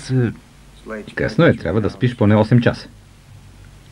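A teenage boy speaks quietly nearby.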